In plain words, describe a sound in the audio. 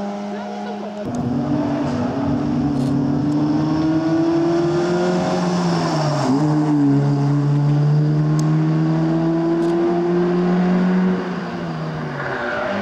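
A car engine revs hard as the car races past through a bend, shifting gears.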